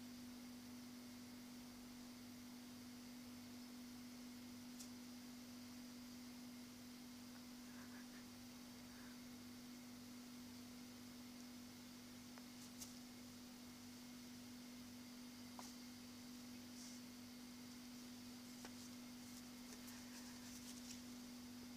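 A parrot chirps softly.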